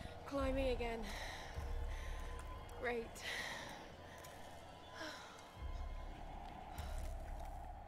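A young woman gasps and breathes heavily.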